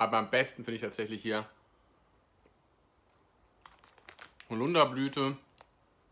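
A plastic sweets bag crinkles.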